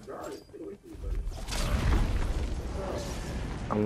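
A loud burst of energy whooshes and roars.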